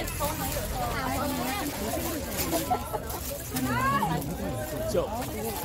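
Plastic packaging rustles as items are handled.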